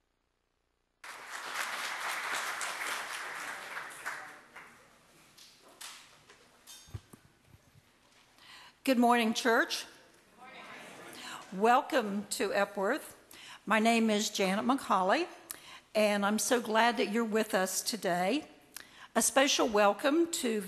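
Handbells ring out together in a large echoing hall.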